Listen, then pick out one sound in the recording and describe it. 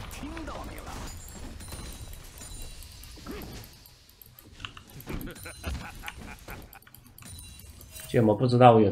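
Game sound effects of spells and hits crackle and thump.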